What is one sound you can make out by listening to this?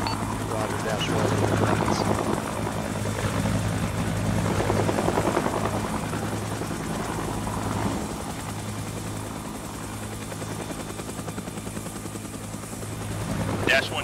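A helicopter's rotor blades thump rapidly and steadily.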